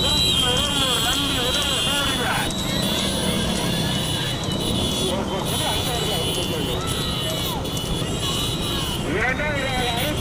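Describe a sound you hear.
Motorcycle engines rumble and rev close by.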